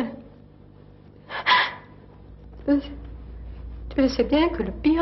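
A woman speaks haltingly and emotionally into a close microphone.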